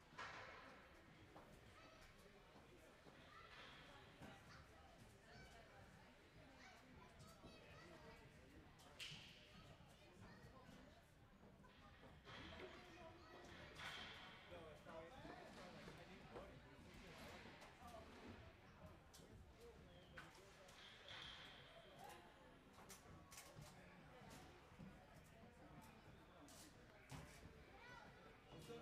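Adult men and women chat in the distance, echoing in a large hall.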